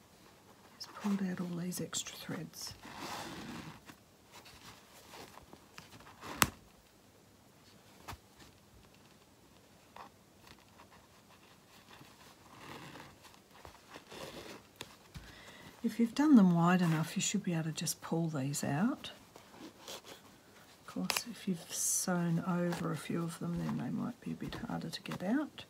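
Cloth rustles softly as it is handled and folded.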